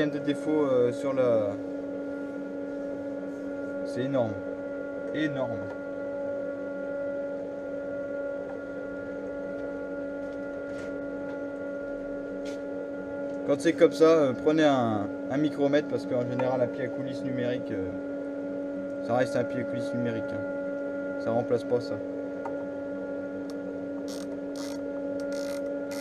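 A lathe motor hums steadily.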